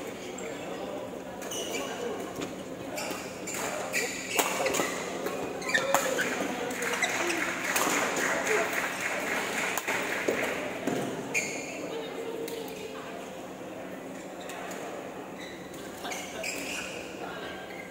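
Shoes squeak on the court floor.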